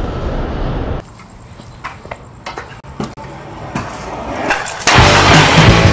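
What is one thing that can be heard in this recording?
A scooter deck clacks sharply against a concrete ledge.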